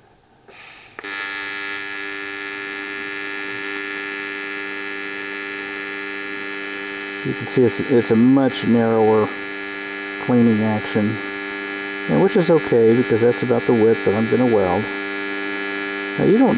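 A welding arc buzzes with a steady, high hum.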